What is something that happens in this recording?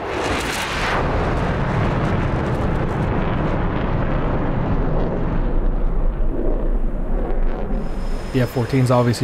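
A jet engine roars steadily, then fades down.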